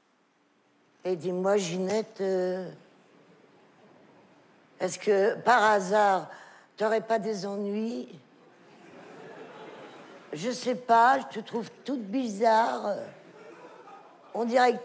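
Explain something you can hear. An elderly woman speaks expressively, heard through a microphone.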